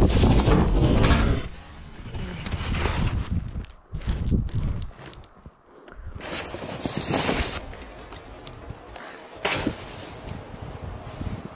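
Wind buffets a microphone outdoors in gusts.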